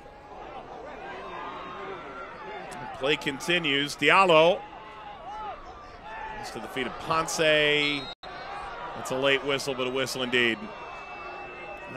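A stadium crowd murmurs and cheers outdoors.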